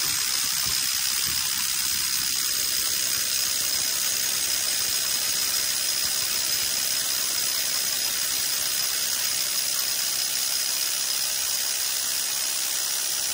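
A drill grinds steadily into concrete close by.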